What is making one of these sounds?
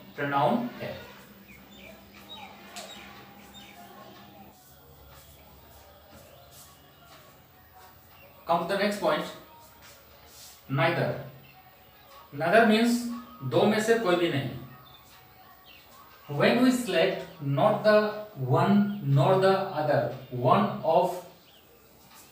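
A man speaks calmly and clearly, as if teaching, close by.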